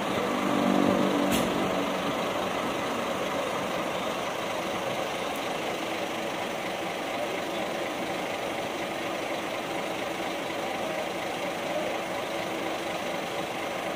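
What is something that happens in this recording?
A large diesel bus engine idles nearby with a steady rumble.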